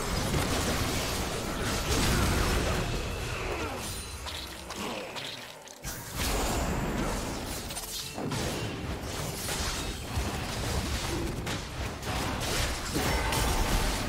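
Game spell and weapon effects crackle and clash.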